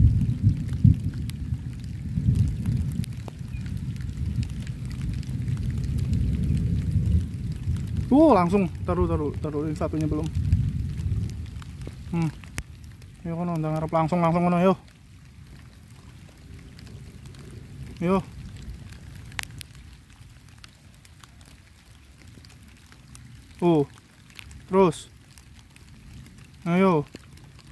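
Rain patters steadily on the surface of a river.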